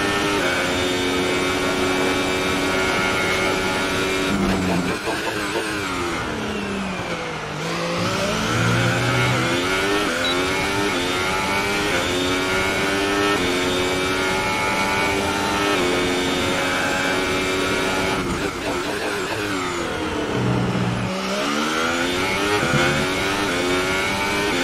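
A racing car engine screams at high revs, dropping in pitch when braking and rising again as it speeds up.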